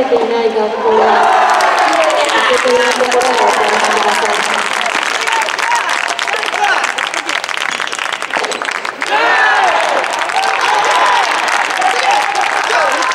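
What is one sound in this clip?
A crowd claps rapidly.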